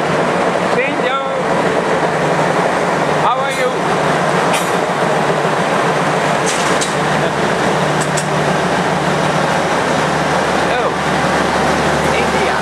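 A diesel locomotive engine rumbles steadily close by.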